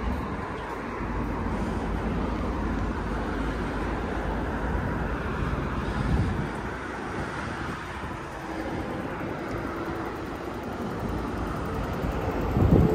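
Wind blusters steadily outdoors.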